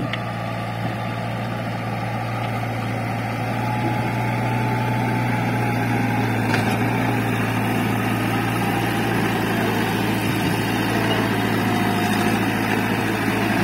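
Soil scrapes and crumbles under a backhoe's bucket.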